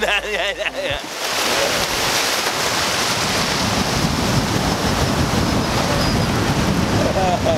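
Water sloshes and splashes around a surfboard.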